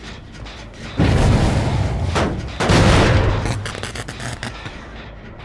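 A heavy metal machine is struck and smashed with loud clanging and grinding.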